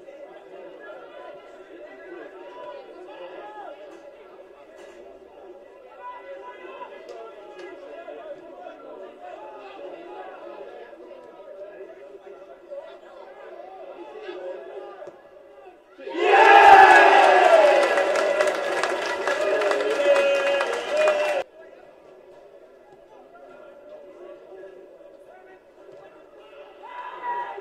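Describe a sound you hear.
Football players shout to each other in the distance across an open pitch.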